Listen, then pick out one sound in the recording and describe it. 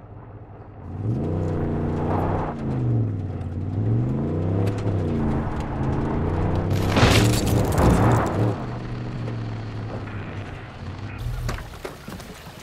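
Tyres crunch over rough ground.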